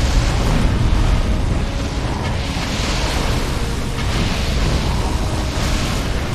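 Electronic laser shots zap repeatedly.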